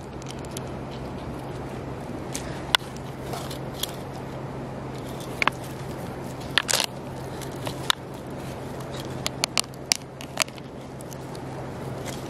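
Pearls click and rattle against a shell as hands handle them.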